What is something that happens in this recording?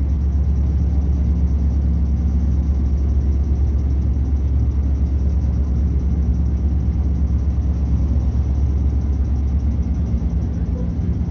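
A train's motor hums low and steady, then eases off.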